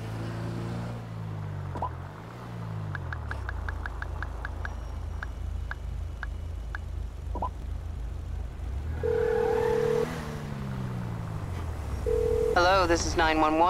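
A car engine runs steadily as a car drives along.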